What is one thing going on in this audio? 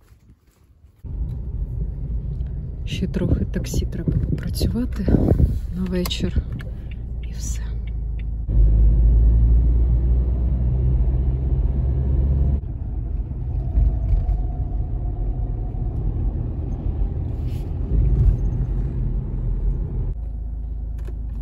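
A car engine rumbles low as the car drives along.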